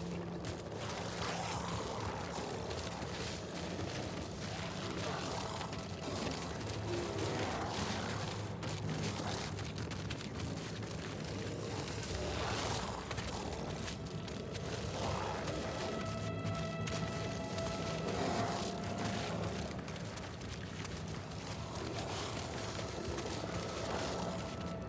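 Monstrous creatures groan and snarl nearby.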